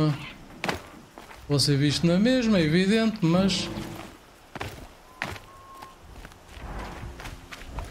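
Footsteps scrape on rock.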